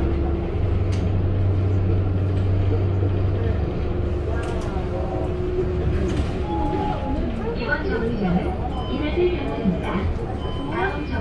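A bus rattles and creaks as it drives along the road.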